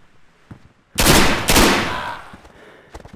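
Two loud gunshots ring out close by, echoing indoors.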